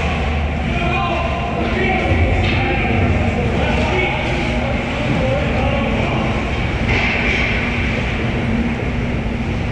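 Skates scrape and carve across ice.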